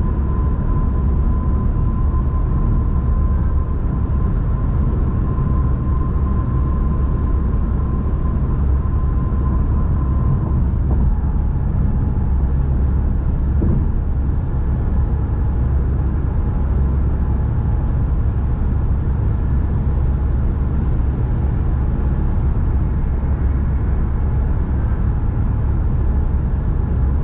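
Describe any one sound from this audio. A car engine drones steadily at highway speed.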